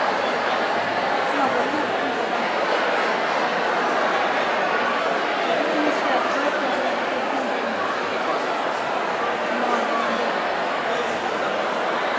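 A crowd of young girls chatters all around in a large echoing hall.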